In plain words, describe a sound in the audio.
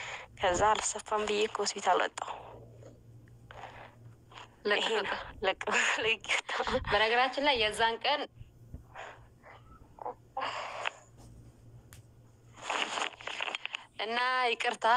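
Young women talk and laugh close by with animation.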